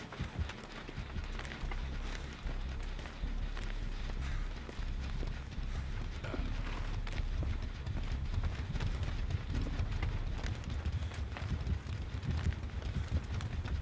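A generator engine rumbles low and steadily.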